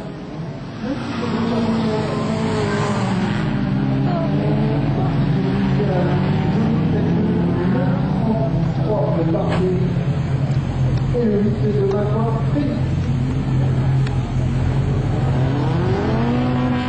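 A rally car engine roars at high revs.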